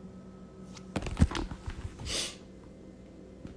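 A phone is handled with rustling knocks close by.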